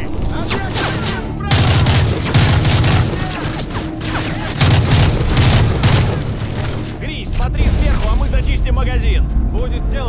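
Automatic rifles fire in loud rapid bursts.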